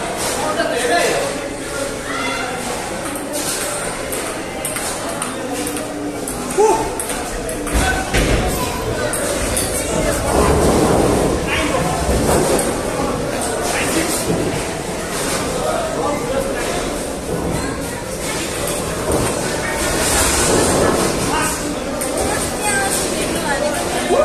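A ping-pong ball clicks back and forth off paddles and a table in a quick rally.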